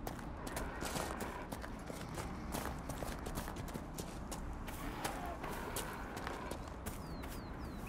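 Footsteps run over grass and stone.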